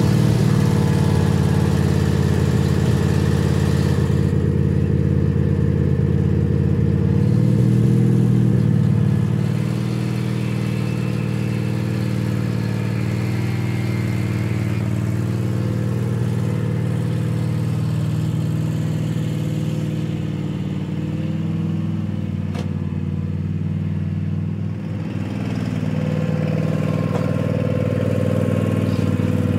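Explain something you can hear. A riding mower engine hums steadily close by.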